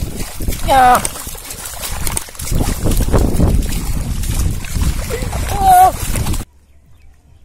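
Muddy water splashes and churns as hands grab at a fish.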